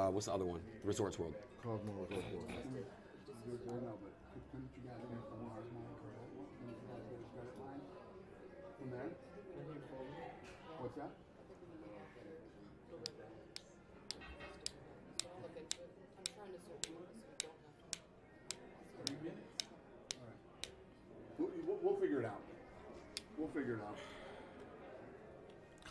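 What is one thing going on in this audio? Men talk and murmur nearby.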